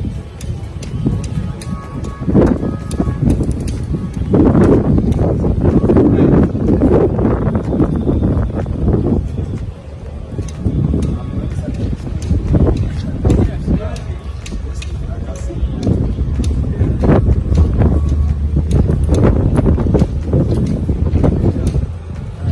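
A cane taps on paving stones.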